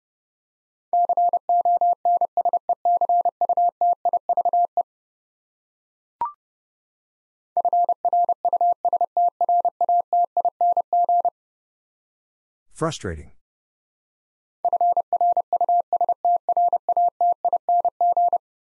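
A Morse code key taps out rapid beeping tones.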